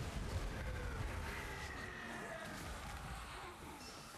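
Creatures snarl and growl.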